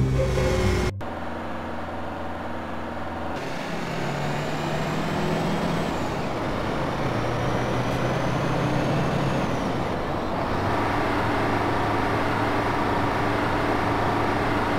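A bus engine drones and climbs in pitch as it speeds up, dropping back with each gear change.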